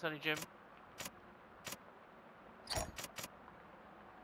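Menu selections click softly.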